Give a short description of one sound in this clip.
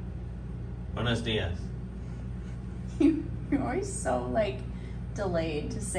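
A young woman talks playfully close by.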